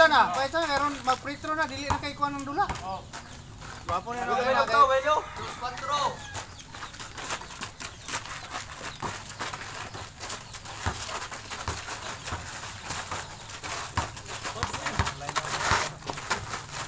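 Sneakers scuff and shuffle on a dirt court.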